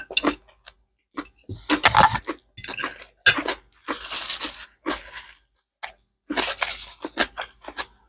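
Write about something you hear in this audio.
Noodles are slurped loudly up close.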